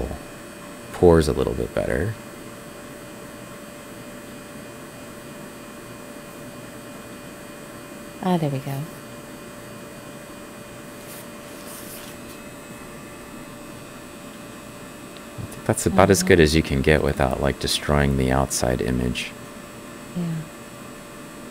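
A man speaks calmly into a headset microphone, in short bursts.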